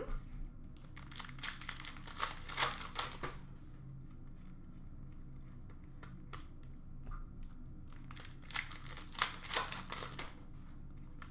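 Cardboard cards rustle and slide as they are handled.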